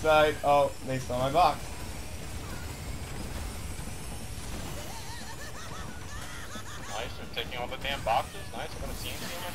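A kart engine hums steadily as it races.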